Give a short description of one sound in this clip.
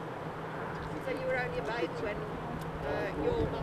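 Older men and women murmur quietly nearby, outdoors.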